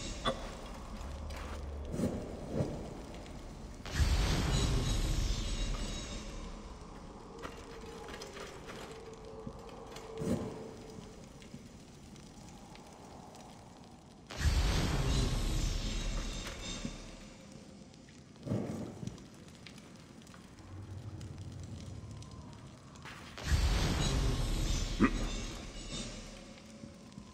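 A torch flame crackles steadily.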